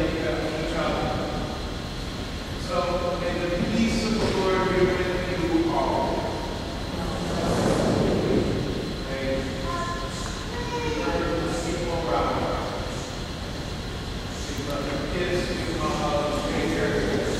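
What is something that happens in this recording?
A man speaks through a microphone in a large echoing hall.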